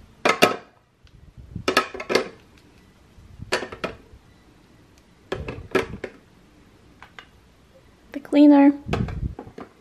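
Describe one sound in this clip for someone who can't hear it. Plastic items clack softly as they are set into a plastic tray.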